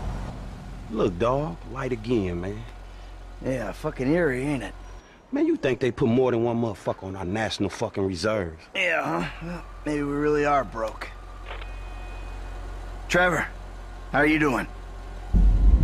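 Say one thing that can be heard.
Two men talk back and forth.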